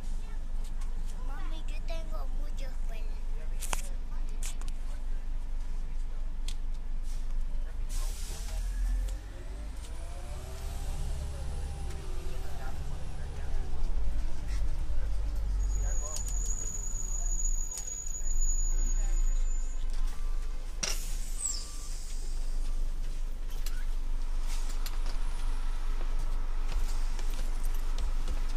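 A city bus engine idles with a low rumble.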